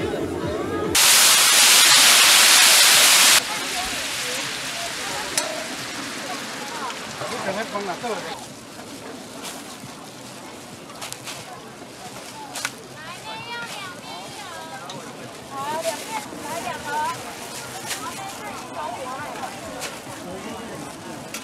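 Broth bubbles and sizzles in a large pan.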